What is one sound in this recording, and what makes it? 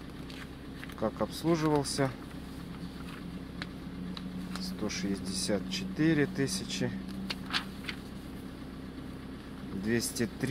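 Paper pages rustle and flip as they are turned by hand.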